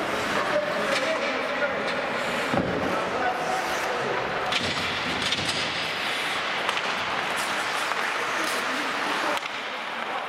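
Hockey sticks clack against a puck and against each other.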